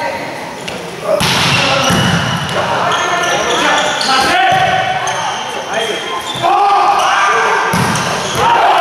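A volleyball is spiked hard and thuds on the floor.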